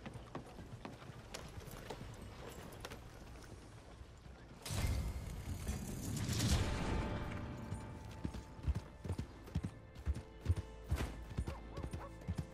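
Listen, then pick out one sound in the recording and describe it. Horse hooves clop steadily on a muddy road.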